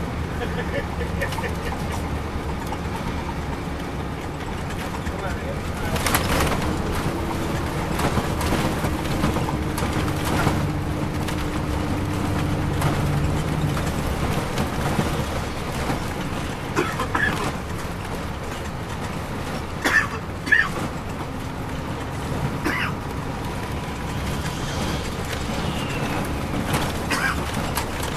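The interior of a coach bus rattles and creaks over the road.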